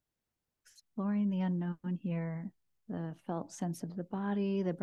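A woman speaks softly and calmly into a close microphone.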